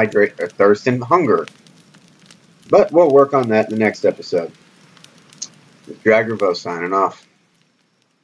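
A man speaks calmly into a microphone, close by, in short bursts.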